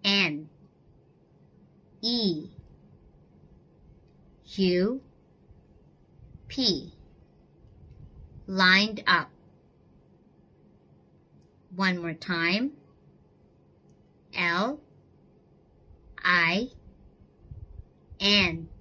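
A young woman speaks clearly and slowly into a microphone, in short separate words with pauses.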